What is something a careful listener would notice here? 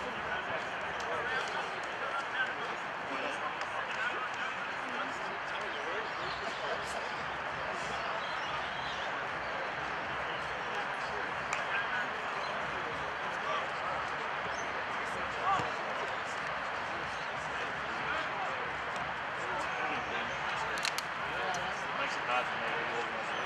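Footballers shout to each other across an open field.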